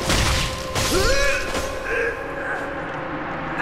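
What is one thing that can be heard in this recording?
An armoured knight grunts and cries out while fighting.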